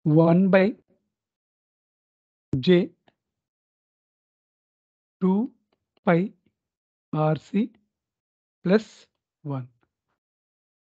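A middle-aged man speaks calmly into a microphone, pausing between short phrases.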